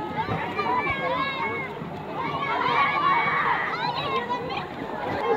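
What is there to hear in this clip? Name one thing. A crowd of children chatter and shout excitedly outdoors.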